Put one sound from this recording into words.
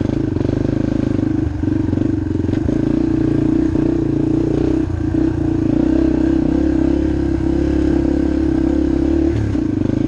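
A motorbike engine drones steadily close by.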